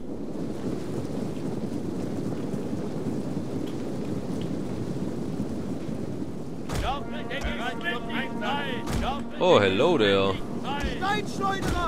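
A large body of marching soldiers tramps and rumbles in the distance.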